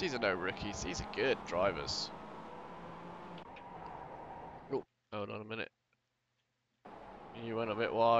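Racing car engines roar and rev up and down.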